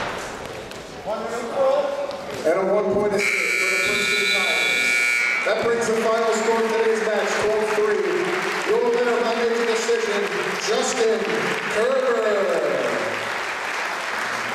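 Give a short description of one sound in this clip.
Spectators shout encouragement in a large echoing hall.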